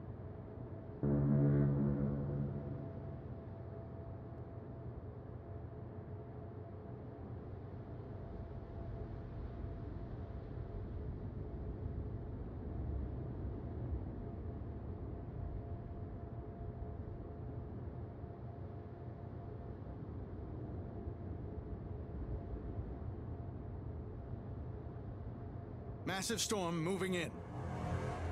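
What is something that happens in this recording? Water swishes along a ship's hull.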